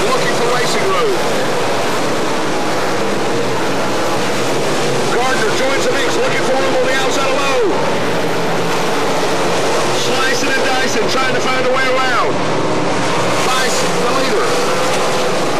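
Race car engines rise and fall in pitch as the cars pass by.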